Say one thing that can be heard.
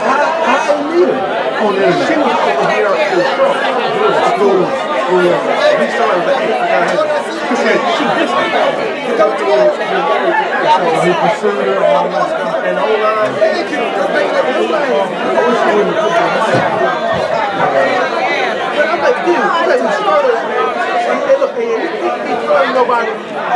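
A crowd of men and women chat and mingle throughout a large echoing hall.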